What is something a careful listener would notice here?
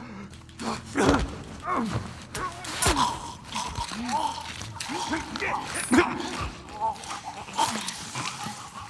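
A young woman grunts and strains while struggling.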